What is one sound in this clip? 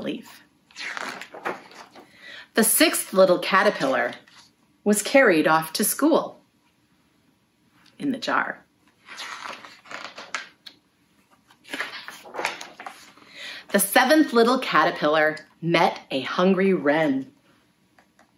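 A middle-aged woman reads aloud close by, with lively expression.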